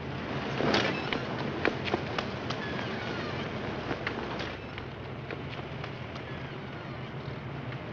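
Footsteps patter quickly on pavement.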